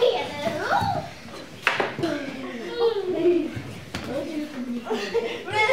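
Small children sing a cheerful song together.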